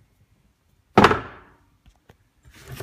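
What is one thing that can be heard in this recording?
A heavy metal piece clanks down onto a hard bench.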